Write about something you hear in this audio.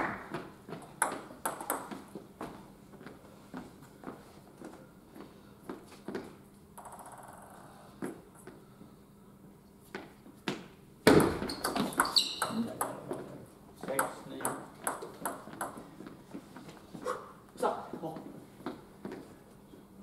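A table tennis ball clicks back and forth on paddles and a table in an echoing hall.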